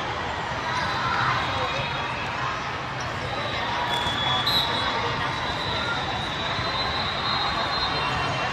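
A crowd of young players and spectators chatters in a large echoing hall.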